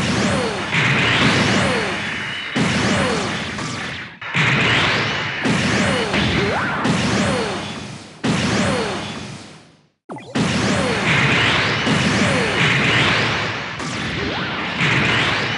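Jet thrusters roar in repeated bursts that fade away.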